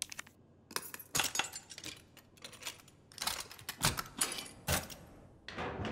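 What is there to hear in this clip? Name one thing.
A metal padlock rattles and clanks as it is forced open.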